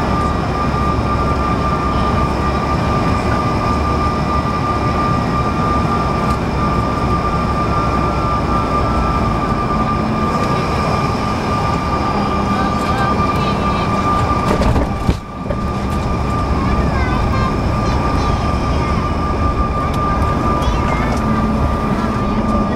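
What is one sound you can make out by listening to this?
Jet engines roar and whine steadily from inside an aircraft cabin.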